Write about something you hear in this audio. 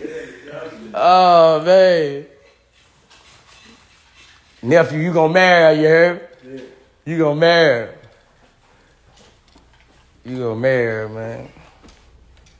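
A young man sings loudly in short bursts, close by.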